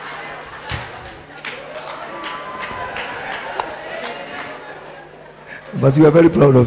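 A crowd laughs and cheers in a large hall.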